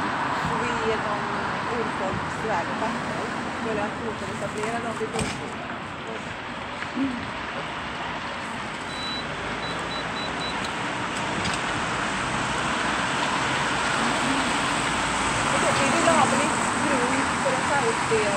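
A man speaks firmly close by.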